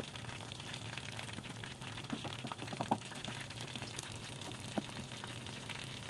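Chopsticks squelch and stir through a thick, wet mixture.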